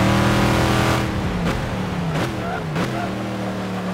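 A race car engine drops in pitch as it brakes and shifts down.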